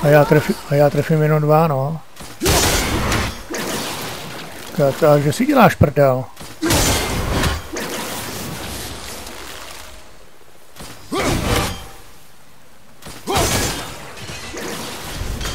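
A thrown axe whooshes through the air.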